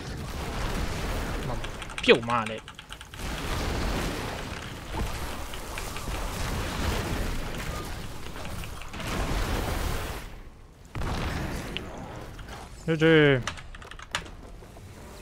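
Game battle effects crackle and boom.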